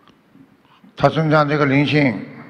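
A middle-aged man speaks calmly into a microphone through loudspeakers.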